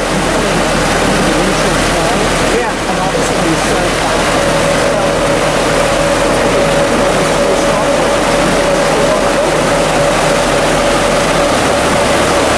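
Water churns and rushes loudly into a lock.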